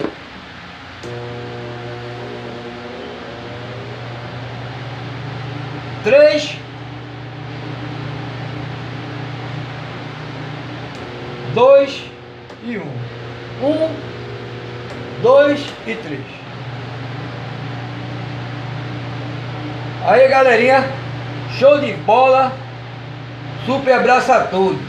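An electric fan motor hums steadily.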